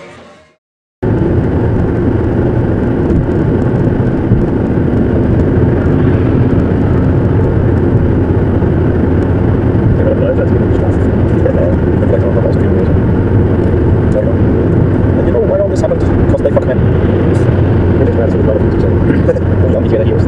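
A car drives fast along a motorway with steady tyre and engine roar.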